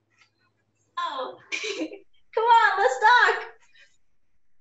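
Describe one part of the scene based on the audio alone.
A young woman talks and laughs cheerfully over an online call.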